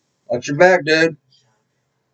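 A young man speaks briefly and loudly, close to the microphone.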